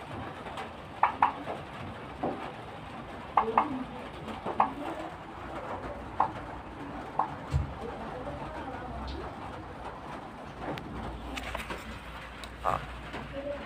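A turkey hen makes short, soft calls close by.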